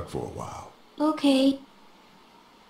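A young girl speaks softly.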